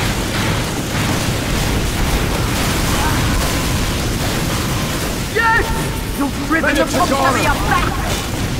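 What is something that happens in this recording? Gunfire and explosions rattle steadily in a video game.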